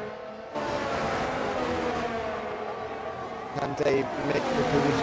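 A racing car engine roars close by, shifting down through the gears.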